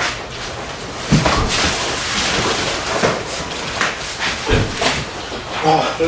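Bare feet scrape and shuffle on packed sand as sumo wrestlers push.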